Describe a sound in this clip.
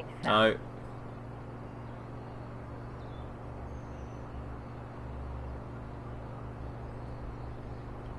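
An engine hums steadily.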